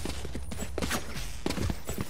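A blade swishes quickly through the air.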